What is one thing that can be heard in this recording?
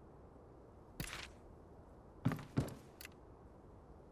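Short interface clicks and chimes sound a few times.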